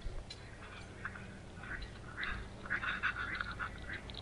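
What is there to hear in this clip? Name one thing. A chipmunk cracks sunflower seed shells.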